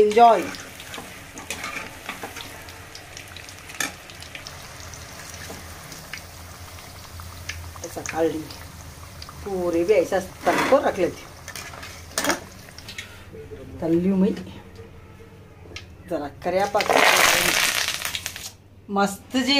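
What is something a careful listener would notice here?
Oil sizzles and crackles as food fries in hot oil.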